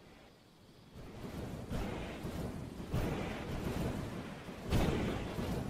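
A jetpack roars in a video game.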